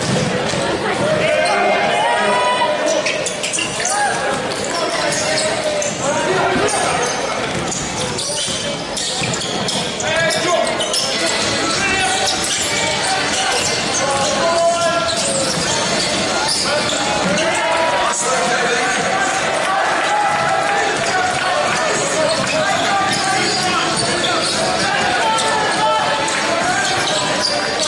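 Basketball shoes squeak on a wooden court in a large echoing hall.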